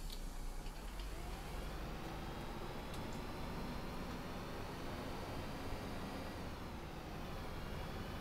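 A bus engine revs up and whines rising in pitch as the bus pulls away.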